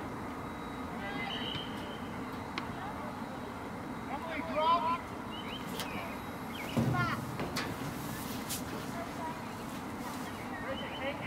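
Young players shout and call to each other far off across an open field.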